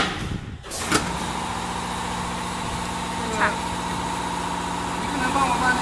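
A packing machine hums and clatters steadily.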